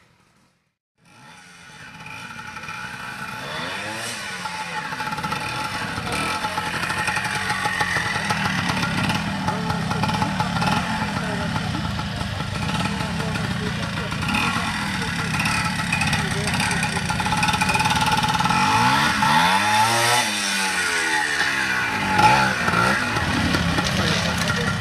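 A motorcycle engine revs and sputters up close, rising and falling.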